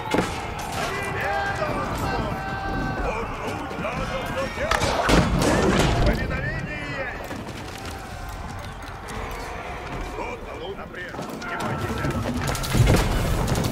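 Battle sounds of weapons clashing and arrows striking ring out.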